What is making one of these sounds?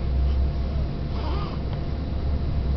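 A baby coos softly close by.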